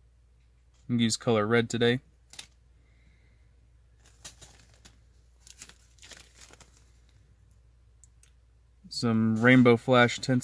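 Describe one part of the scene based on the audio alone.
A plastic packet crinkles in a hand.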